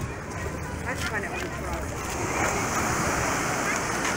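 Small waves wash gently onto a beach in the distance.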